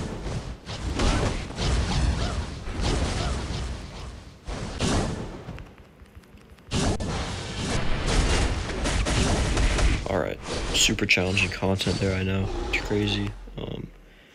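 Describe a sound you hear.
Explosions and blasts boom in a fast fight.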